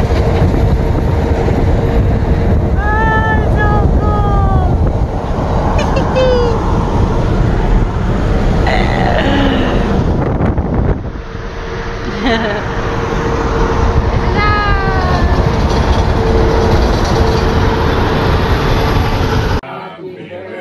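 A vehicle's engine and tyres rumble steadily on a highway.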